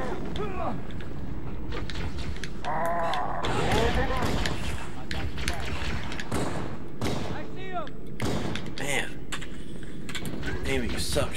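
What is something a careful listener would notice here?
Gunshots fire in quick, sharp bursts.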